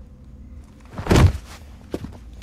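A body thuds heavily onto the floor.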